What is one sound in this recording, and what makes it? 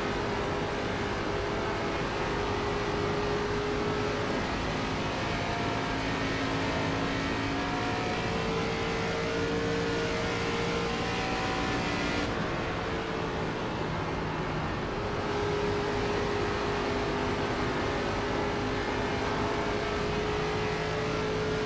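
Tyres hum on the track.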